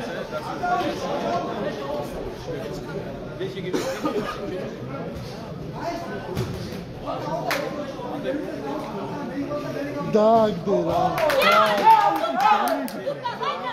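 A crowd of men talk and shout nearby in a large echoing hall.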